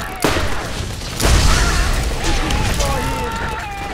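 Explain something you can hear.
A gun fires loud shots.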